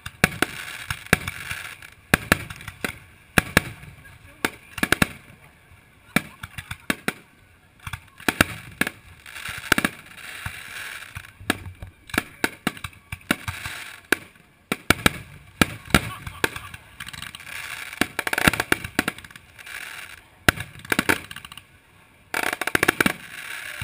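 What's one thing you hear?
Fireworks burst with sharp bangs and pops in the distance.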